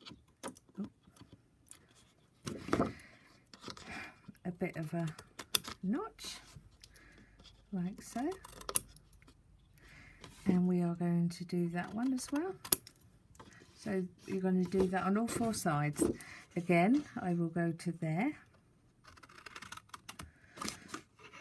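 Scissors snip through stiff card.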